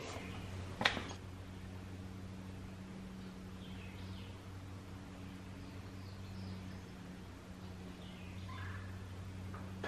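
Oil pours and gurgles into a funnel.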